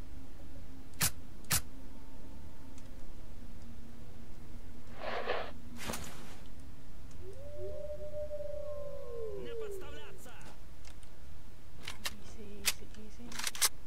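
A rifle's mechanism clicks and clacks.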